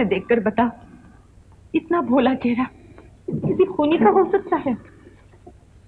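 A young woman talks quietly, close by.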